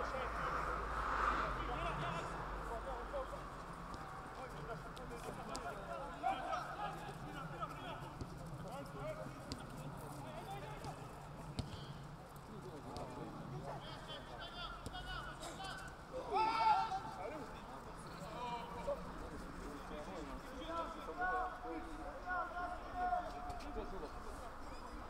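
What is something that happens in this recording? Young men shout and call to each other across an outdoor pitch.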